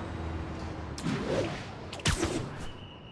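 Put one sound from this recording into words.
A web line shoots out with a sharp snap.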